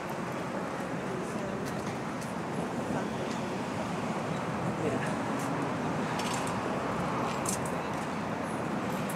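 Several men talk at a distance outdoors.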